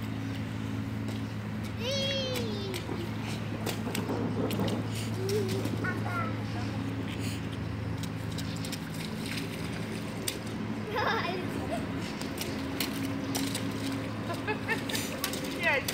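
Boots splash and slap in shallow puddle water.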